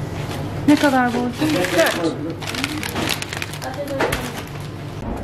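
A paper bag crinkles and rustles in hands.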